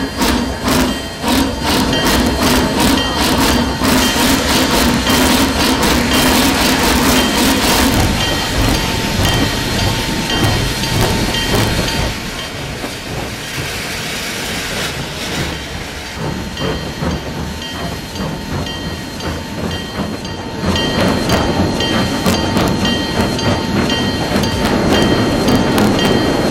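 A steam locomotive chuffs in a steady rhythm.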